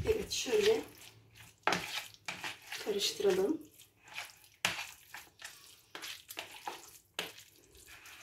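A fork stirs a thick, wet mixture with soft squelching.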